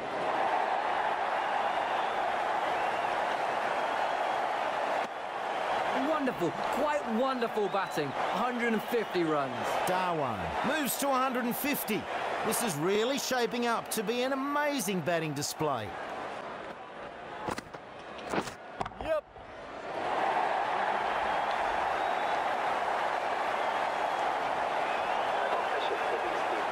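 A large crowd cheers and roars steadily in a big open stadium.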